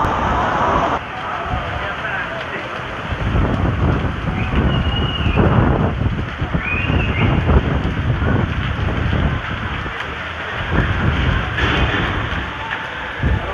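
Strong wind gusts and roars against the microphone.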